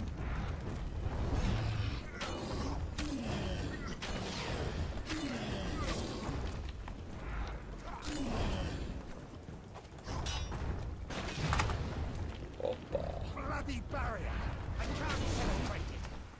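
Heavy thuds and explosions boom.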